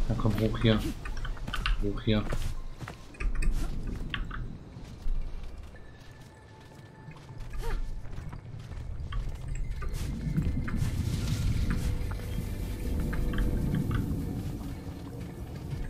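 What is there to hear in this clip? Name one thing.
Light climbing footsteps and grips thump softly on wood.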